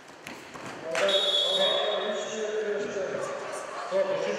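Spectators shout and cheer.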